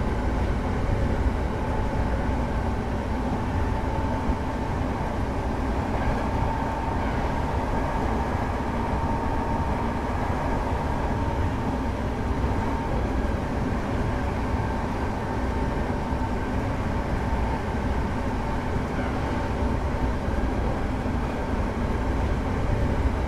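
An electric motor hums with a steady whine.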